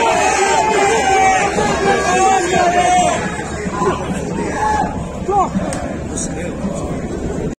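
A large crowd of fans chants and sings loudly in an open stadium.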